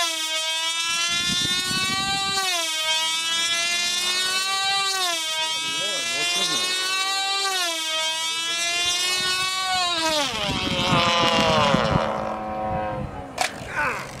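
Small model airplane engines whine loudly overhead, their pitch rising and falling as they fly past.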